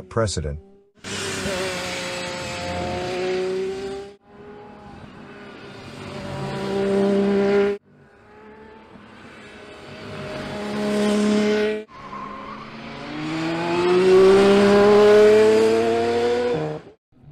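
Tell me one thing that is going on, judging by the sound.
A race car engine roars loudly as the car speeds past and fades away.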